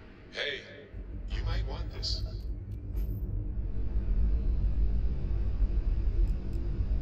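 A spaceship engine rumbles deeply and steadily.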